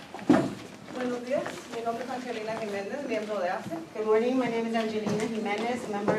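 An elderly woman speaks calmly into a microphone, heard through a loudspeaker in a hall.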